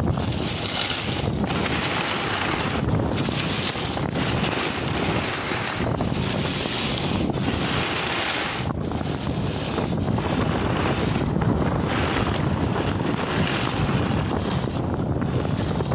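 A snowboard hisses and scrapes over snow.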